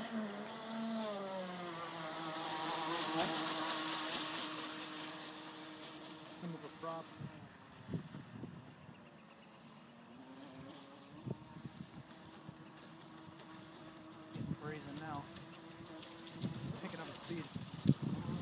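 A small model boat motor whines loudly, rising and falling in pitch as it speeds past and fades into the distance.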